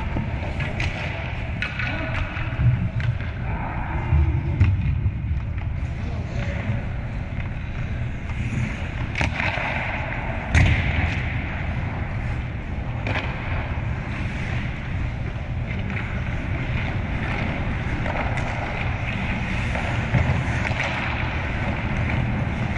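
Skates scrape and glide on ice in a large echoing arena.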